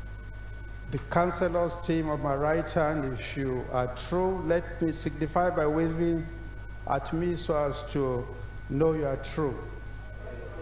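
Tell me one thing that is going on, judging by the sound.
An adult man speaks with animation through a microphone.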